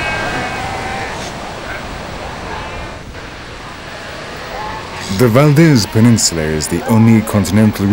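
Surf breaks on a beach.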